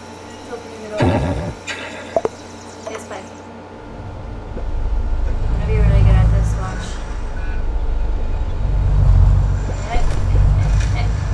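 A teenage boy talks casually close to a microphone.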